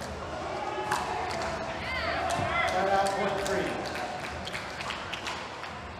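A crowd cheers and claps after a point.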